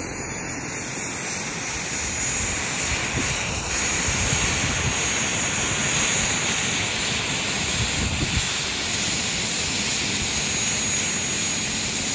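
Wind blusters outdoors against the microphone.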